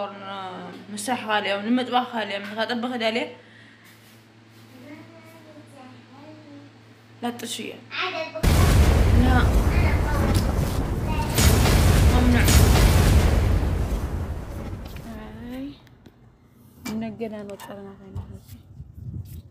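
A young woman talks calmly close to the microphone.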